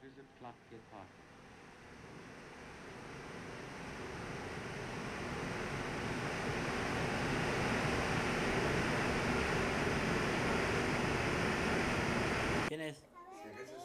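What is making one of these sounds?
Rushing water roars and grows steadily louder.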